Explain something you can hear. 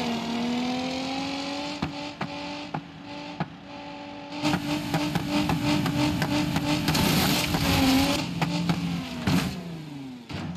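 An engine revs high and steady as a vehicle races along.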